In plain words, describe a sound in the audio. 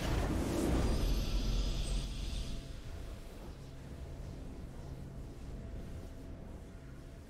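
A triumphant game fanfare plays and slowly fades.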